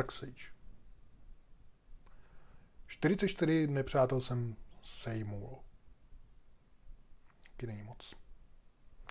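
A middle-aged man talks calmly and expressively into a close microphone.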